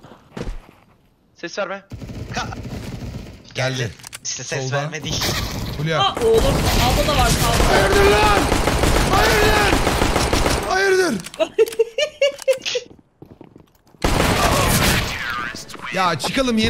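A man talks excitedly and shouts close to a microphone.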